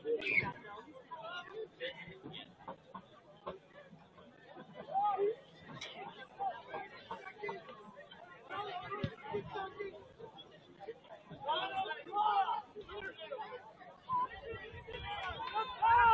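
A crowd of spectators chatters and calls out across an open outdoor field.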